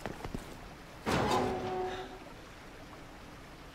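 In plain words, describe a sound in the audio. A heavy metal door creaks and swings open.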